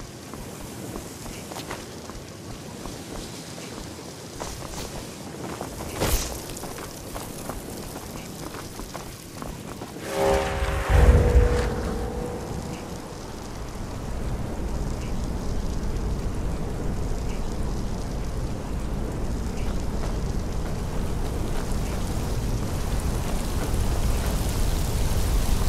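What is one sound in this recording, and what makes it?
Magic hums and crackles softly in both hands.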